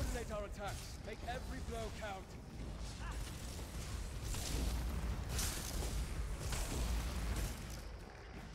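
Magic blasts whoosh and crackle loudly.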